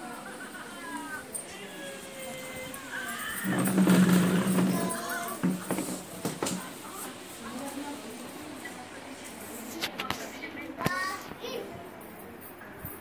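Several women talk and chatter nearby.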